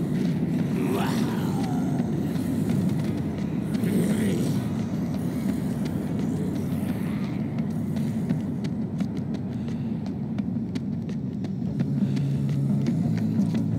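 Quick footsteps patter on hard ground.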